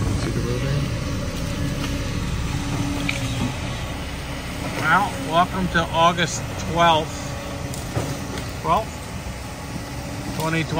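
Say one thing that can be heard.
A diesel excavator engine rumbles steadily nearby.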